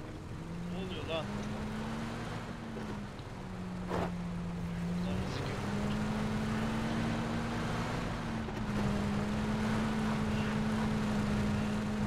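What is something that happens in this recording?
A truck engine drones steadily, shifting pitch as it revs over rough ground.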